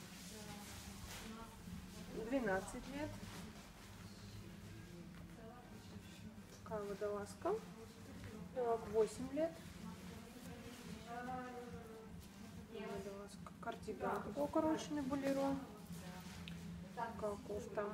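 Knitted clothes rustle softly as they are handled and laid down.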